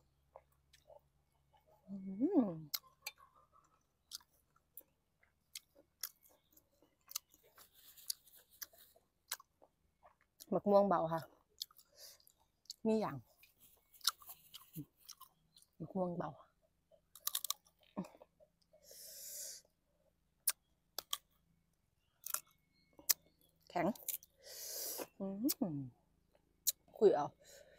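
A young woman chews and crunches food close up.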